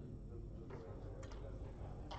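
A hand presses a game clock button with a click.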